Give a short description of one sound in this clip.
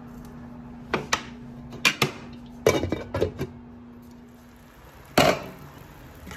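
A glass lid clanks against a metal pot.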